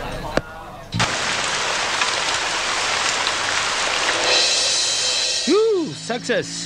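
Thunder crashes loudly.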